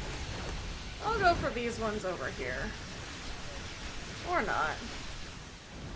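A young woman speaks briefly and animatedly into a close microphone.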